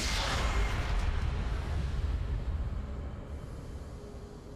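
A magical blast bursts with a loud whoosh and slowly fades.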